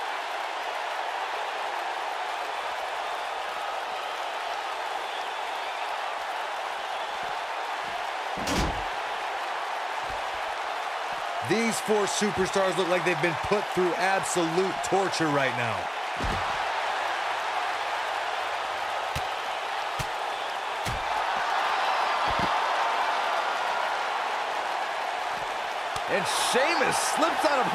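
A large arena crowd cheers and roars.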